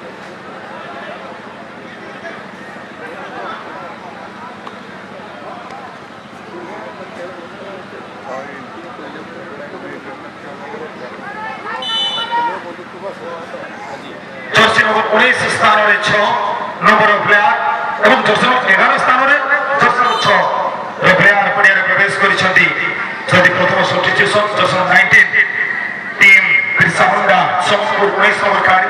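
A large crowd murmurs outdoors.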